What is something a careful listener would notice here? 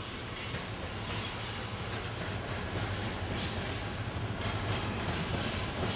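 A diesel locomotive engine drones as it pulls away.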